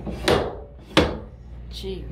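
A metal door bolt clacks sharply twice.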